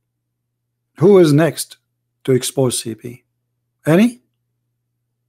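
A man speaks in short bursts through a microphone.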